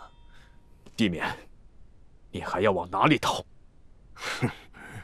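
A man cries out in pain close by.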